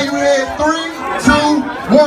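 A young man raps into a microphone.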